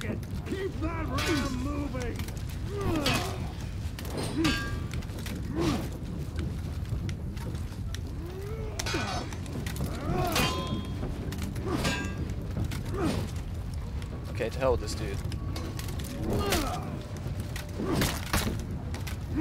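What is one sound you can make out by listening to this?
Fighters grunt and shout with effort.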